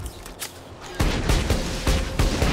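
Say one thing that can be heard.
A gun fires a rapid burst of loud shots.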